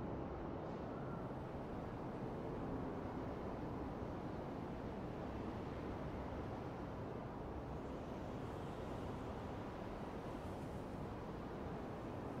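Steady wind blows high above a city.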